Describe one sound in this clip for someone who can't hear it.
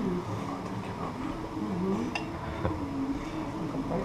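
Clay pots clink as they are set on plates.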